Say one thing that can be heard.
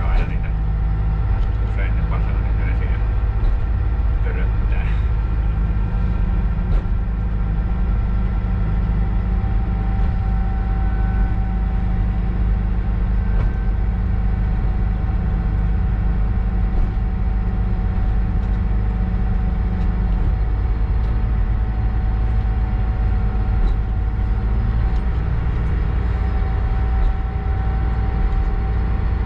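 Train wheels clatter over the rail joints.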